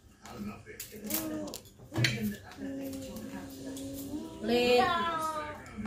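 Women talk nearby with animation.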